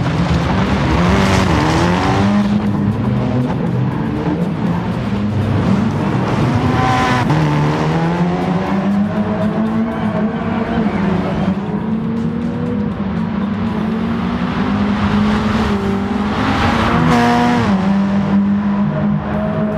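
A rally car engine revs hard and shifts gears.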